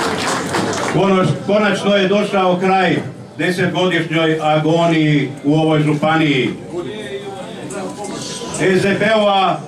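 A middle-aged man speaks forcefully into a microphone over a loudspeaker.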